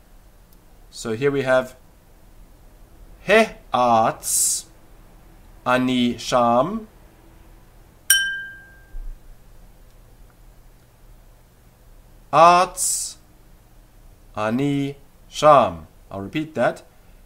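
A man speaks close to a microphone in short bursts, with pauses.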